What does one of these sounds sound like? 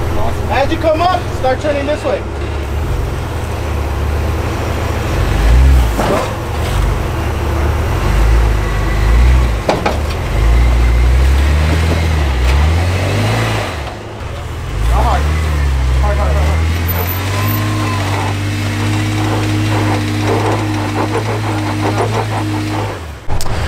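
An off-road vehicle's engine rumbles and revs as the vehicle crawls over rocks.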